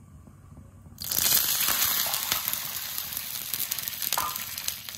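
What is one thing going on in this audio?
Water pours into a hot pan with a loud hiss.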